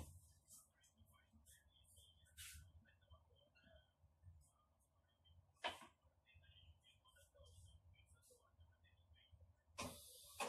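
Objects knock lightly against a hard counter.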